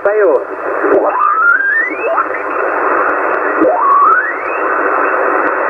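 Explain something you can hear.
A radio whistles with rising squeals as it is tuned.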